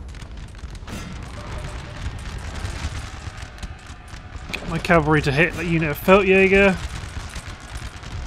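Musket fire crackles in a distant battle.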